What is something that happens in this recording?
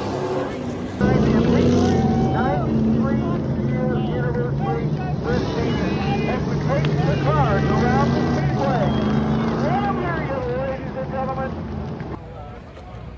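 Race car engines roar and whine.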